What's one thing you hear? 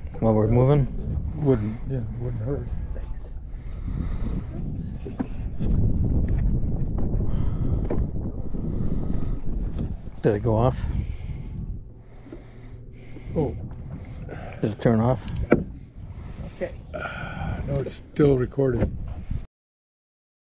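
An elderly man talks with animation, close by.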